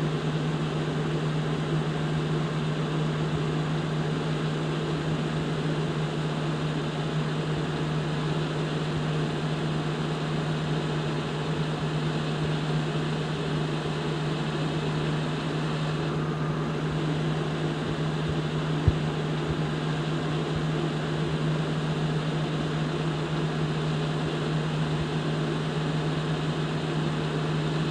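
A semi-truck's engine drones as it cruises along a highway.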